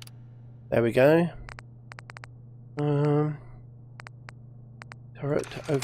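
A computer terminal clicks as menu items are scrolled.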